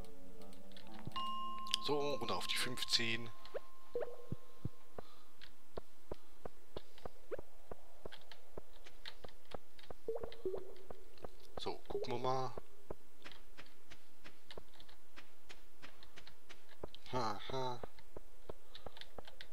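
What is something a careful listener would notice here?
Quick footsteps patter steadily on a stone floor.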